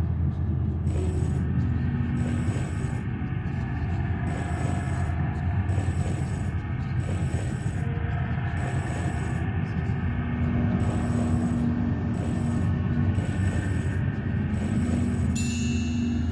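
A game clock ticks once a second.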